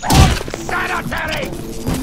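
Electricity crackles and zaps.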